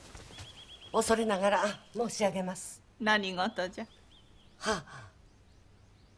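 A woman speaks firmly.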